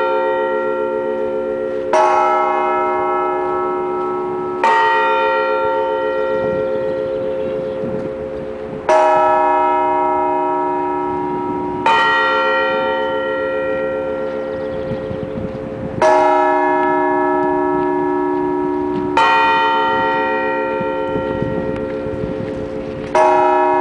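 Large church bells ring out slowly, each stroke humming and fading away.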